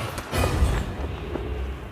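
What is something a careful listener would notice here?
A bright magical burst shimmers and crackles.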